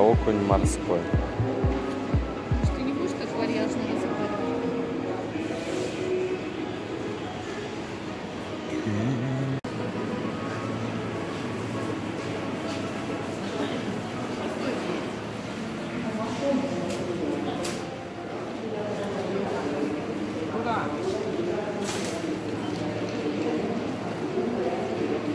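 Many shoppers talk in a hubbub nearby.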